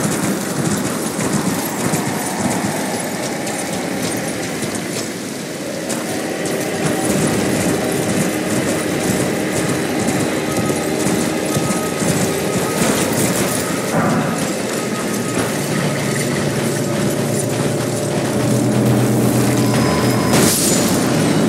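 A horse gallops with hooves thudding on soft ground.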